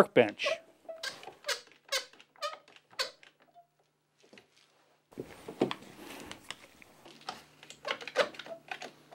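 An older man talks calmly, close by.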